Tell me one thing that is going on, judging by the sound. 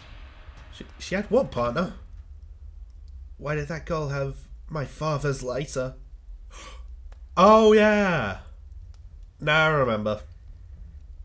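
A young man speaks with animation into a close microphone, reading out lines and exclaiming.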